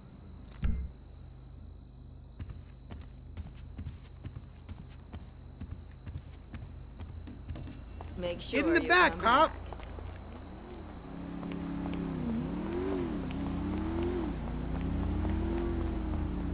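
Footsteps tap on a hard floor and then on pavement.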